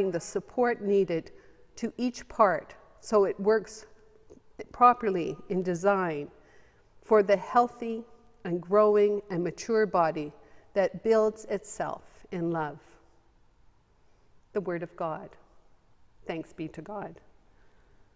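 A middle-aged woman speaks calmly into a microphone, reading out.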